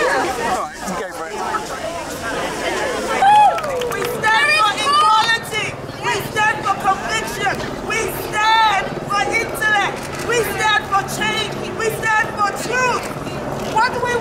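A crowd of women chants loudly.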